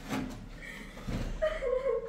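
A blanket flaps through the air.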